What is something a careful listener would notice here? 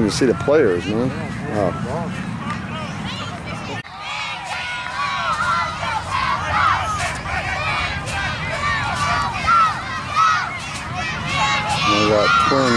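A crowd of spectators shouts and cheers nearby, with high young voices.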